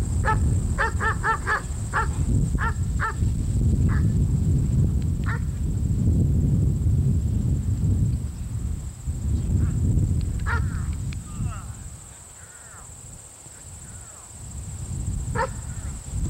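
A dog barks in short, sharp bursts.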